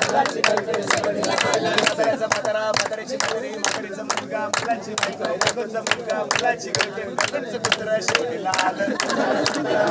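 A crowd of people claps hands in rhythm.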